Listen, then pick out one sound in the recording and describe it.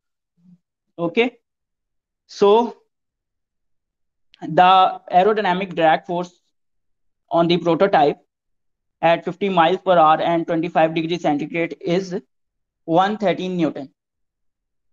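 A young man speaks calmly, in pauses, over an online call.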